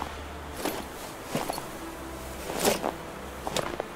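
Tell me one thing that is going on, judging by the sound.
Tyres churn and spray through deep snow.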